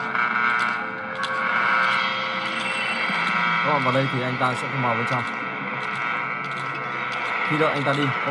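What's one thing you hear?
Eerie video game music hums steadily.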